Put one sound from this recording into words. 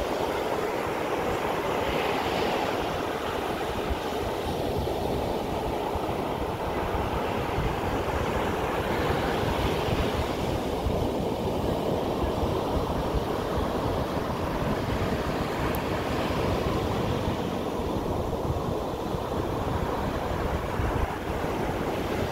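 Waves break and wash up onto the shore with a steady rushing roar.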